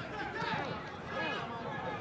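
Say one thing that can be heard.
A player kicks a football.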